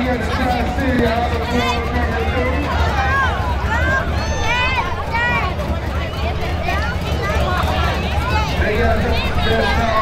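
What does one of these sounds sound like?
A crowd of adults and children cheers and shouts outdoors.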